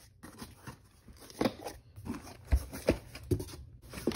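Paper wrapping crinkles as a hand pushes it.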